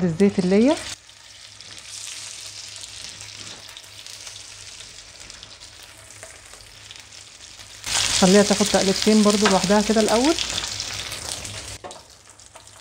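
Meat sizzles in hot oil in a pan.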